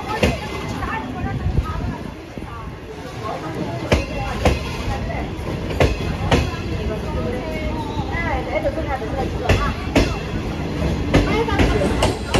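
A train rolls slowly past close by, its wheels clacking over rail joints.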